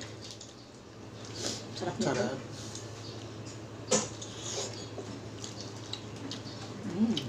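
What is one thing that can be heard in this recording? Food crinkles and rustles in fingers close to a microphone.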